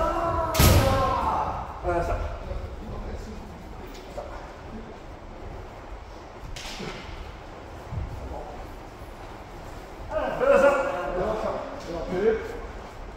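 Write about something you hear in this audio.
Men and women shout loudly in an echoing hall.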